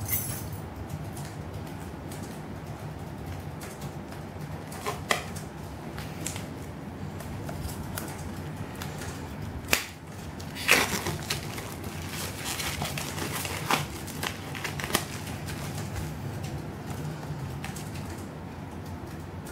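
Hands handle and tap plastic cases.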